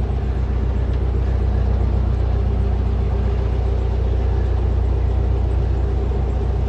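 A boat engine chugs steadily and close by.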